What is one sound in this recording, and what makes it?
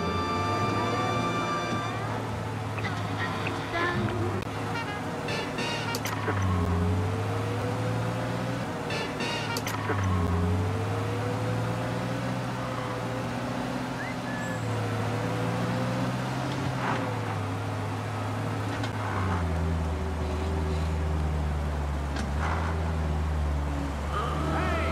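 An old car engine hums steadily, rising and falling in pitch as the car drives.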